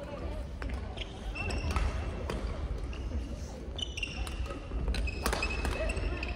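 Sounds echo around a large hall.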